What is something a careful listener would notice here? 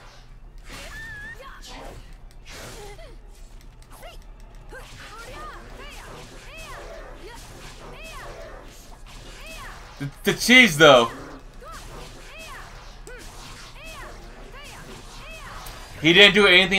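Blades clash and swish in a fight.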